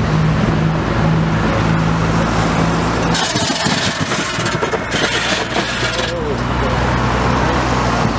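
Cars drive past one after another on an asphalt road.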